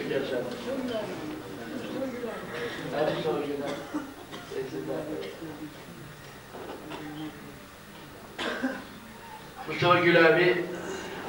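An elderly man speaks with animation into a nearby microphone.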